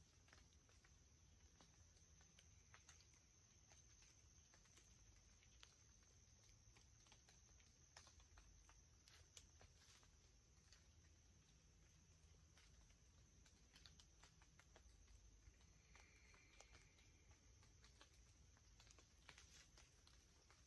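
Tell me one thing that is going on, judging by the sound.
Wind rustles leaves outdoors.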